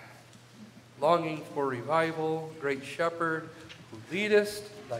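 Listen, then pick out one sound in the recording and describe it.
A middle-aged man speaks calmly into a microphone in an echoing hall.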